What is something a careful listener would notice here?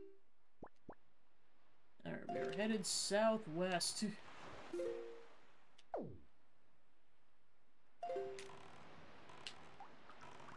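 Short electronic chimes and blips from a video game ring out.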